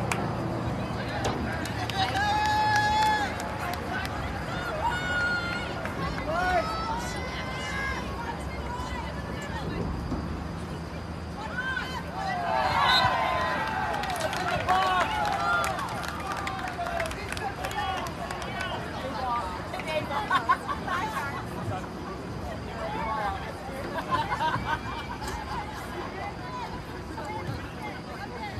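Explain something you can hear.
Young women shout to each other in the distance across an open field.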